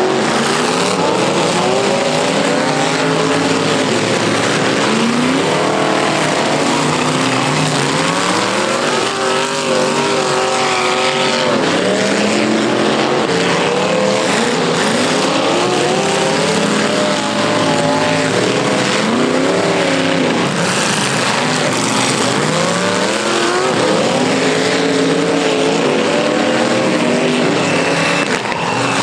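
Several car engines roar and rev loudly, rising and falling in pitch.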